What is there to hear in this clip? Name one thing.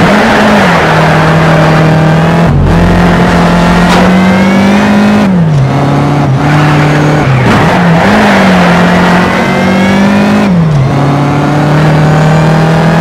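A car engine roars loudly, revving up and dropping in pitch with each gear change.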